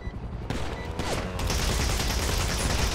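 A pistol fires loudly.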